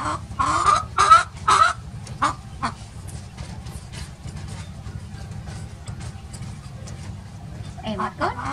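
A chicken squawks loudly in short bursts.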